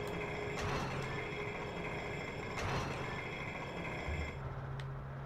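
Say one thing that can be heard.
A spinning top whirs and grinds steadily along a stone track.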